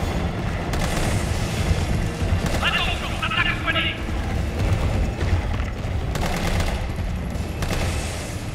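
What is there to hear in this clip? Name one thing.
A handgun fires shot after shot, with loud echoing bangs.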